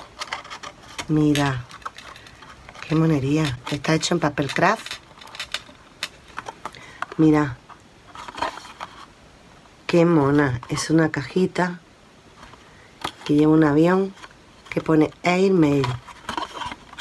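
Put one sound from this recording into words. Thin card rustles and creaks as it is folded.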